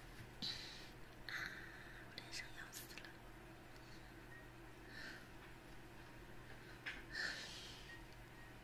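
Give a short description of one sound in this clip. A young woman whispers softly and close into a microphone.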